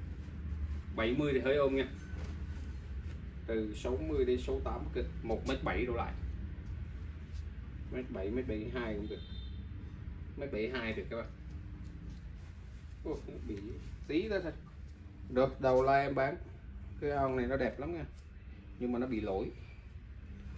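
A middle-aged man speaks in short bursts, close by.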